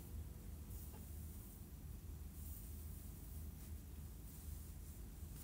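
Hair rustles softly close by.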